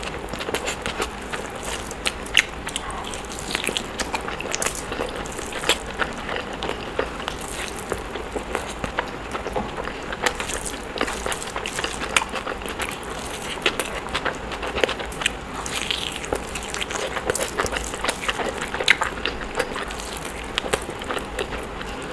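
Fingers squish and mix rice close to a microphone.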